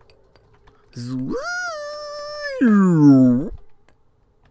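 A falling tone swoops downward as a block drops away.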